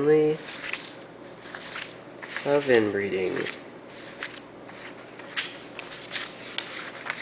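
Paper cards rustle and tap softly as they are laid down one by one.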